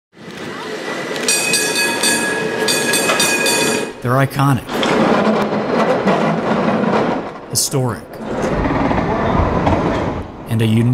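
A cable car rumbles and clatters along its rails.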